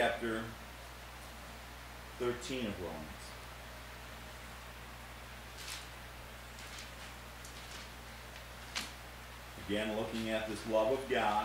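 Book pages rustle as a man turns them.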